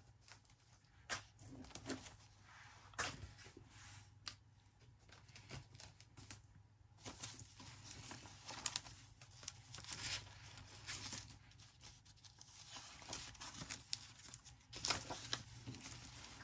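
Paper rustles and crinkles close by as sheets are handled.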